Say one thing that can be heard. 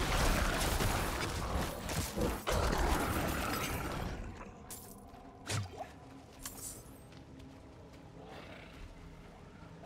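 Blows, slashes and crashing impacts of a fierce fight sound loudly, then thin out to scattered hits.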